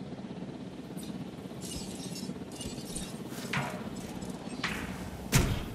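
Soft interface clicks and chimes sound as menus open.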